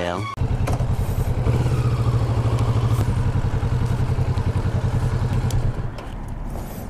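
A motorcycle engine rumbles loudly as the bike rides along.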